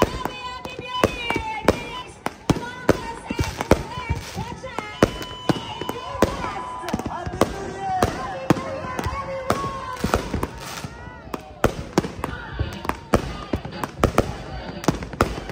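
Fireworks crackle and fizz.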